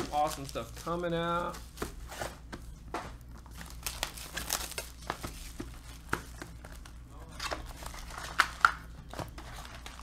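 Plastic card wrappers rustle and crinkle up close.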